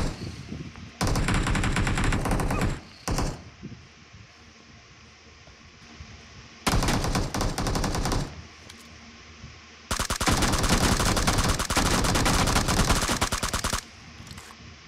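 A rifle fires in long, rapid bursts.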